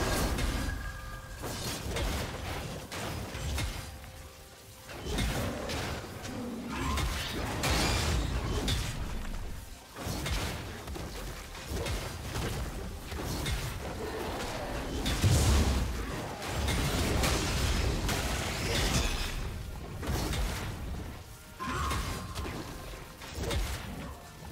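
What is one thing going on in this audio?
Game combat sound effects clash and burst.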